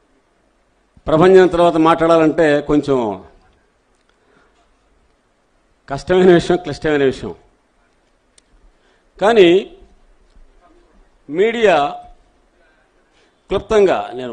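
An elderly man speaks into a microphone through loudspeakers, in short phrases with pauses.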